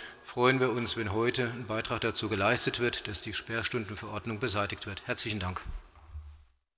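A middle-aged man speaks firmly into a microphone.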